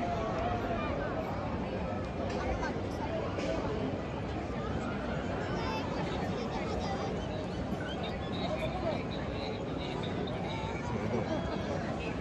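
A large crowd murmurs and chatters all around.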